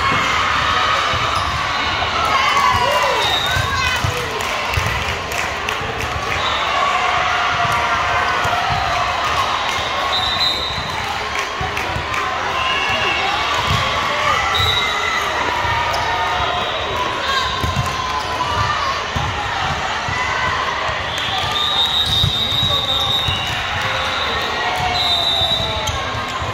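Crowds of girls shout and chatter throughout a large echoing gym.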